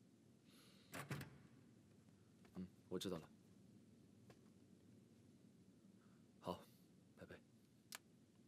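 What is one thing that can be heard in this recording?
A man speaks briefly into a phone at a distance.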